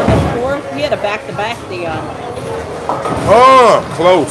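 A bowling ball rolls down a lane with a low rumble.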